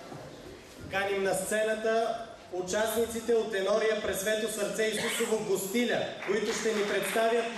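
A young man reads aloud into a microphone, heard through loudspeakers in a large echoing hall.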